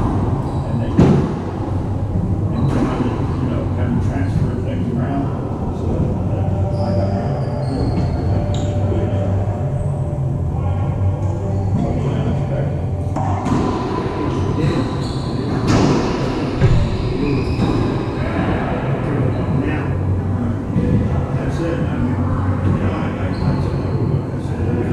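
Rackets strike a ball with sharp pops.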